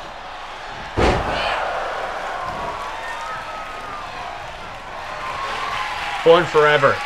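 A crowd cheers and roars in a large arena.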